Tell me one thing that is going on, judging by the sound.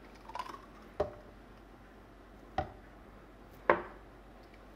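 A metal pot clinks sharply against ceramic mugs a few times.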